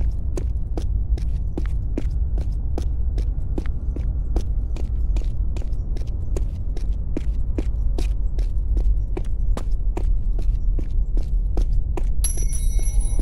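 Footsteps run quickly and evenly on a stone floor.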